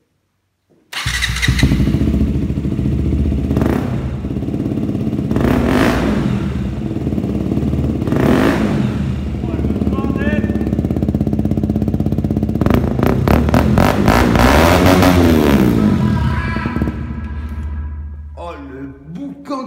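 A motorcycle engine starts and idles with a loud, deep rumble close by.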